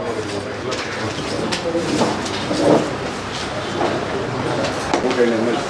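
Paper rustles as papers are handled.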